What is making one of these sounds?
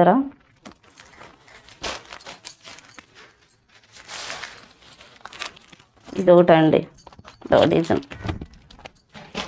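A woman speaks close by in short bursts.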